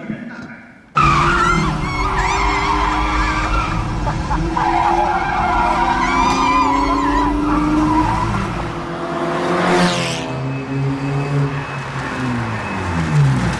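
An engine roars loudly as a car races.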